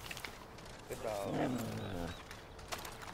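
A dog whines softly.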